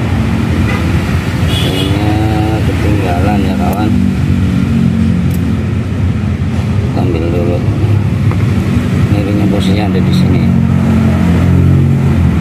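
A small metal tool scrapes and clicks against a hard plastic part.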